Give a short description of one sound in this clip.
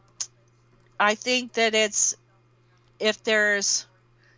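A woman speaks briefly through a microphone.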